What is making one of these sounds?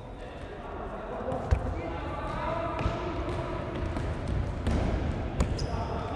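Young men shout across an echoing hall.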